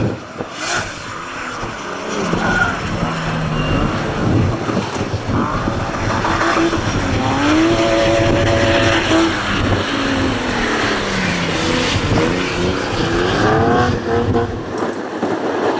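Tyres squeal as cars slide around a bend.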